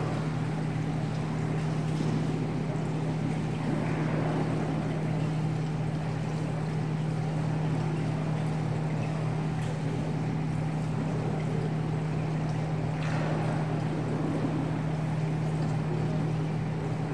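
People murmur quietly in a large echoing hall.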